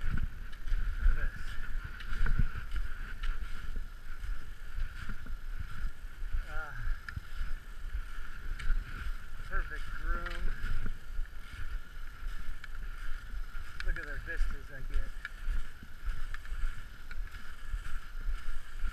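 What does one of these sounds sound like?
Ski poles crunch into snow in a steady rhythm.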